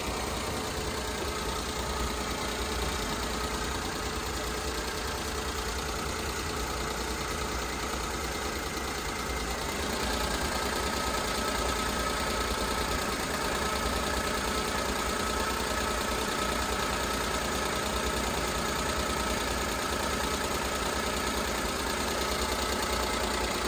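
An engine idles steadily with a close, whirring rattle.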